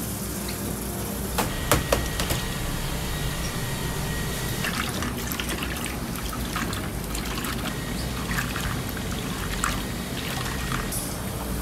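Broth bubbles and simmers in a pot.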